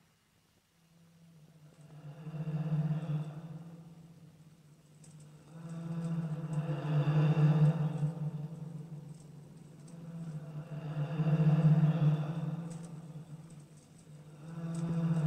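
A large beast breathes heavily in slow, swelling snorts.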